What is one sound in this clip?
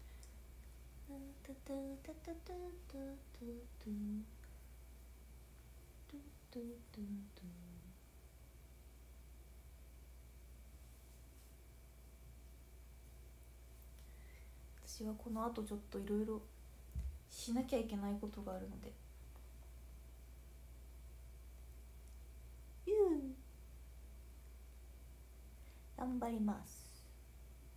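A young woman speaks softly and calmly into a close microphone, in short bursts with pauses.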